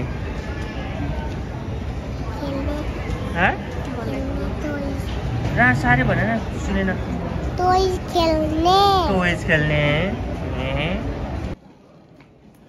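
A young boy talks brightly close by.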